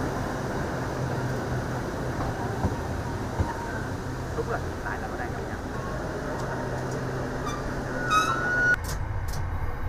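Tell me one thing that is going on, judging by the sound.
A train rolls slowly along the tracks with a low rumble.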